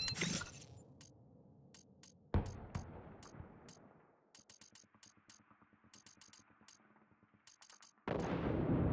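Short electronic clicks tick in quick succession.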